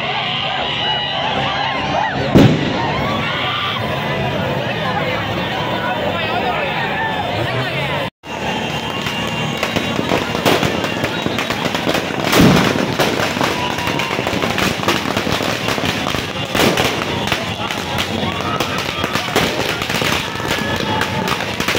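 Firecrackers bang and crackle nearby.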